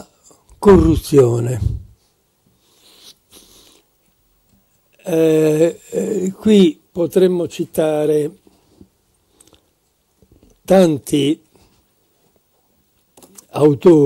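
An elderly man lectures calmly through a microphone, in bursts with pauses.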